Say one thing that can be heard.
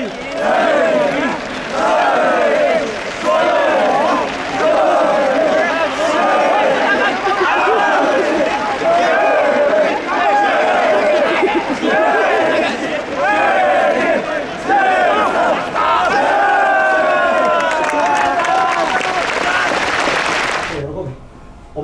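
A crowd of young men cheers and shouts rhythmically outdoors.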